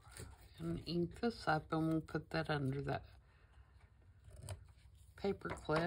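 Scissors snip through paper close by.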